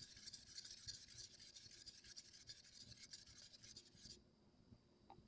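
A stick scrapes and stirs paint in a plastic cup.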